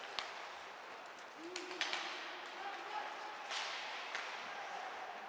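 Hockey sticks clack sharply against the puck.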